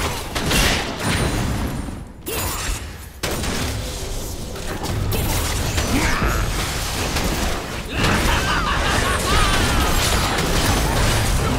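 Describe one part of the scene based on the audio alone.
Magic spells crackle and blast in a busy video game battle.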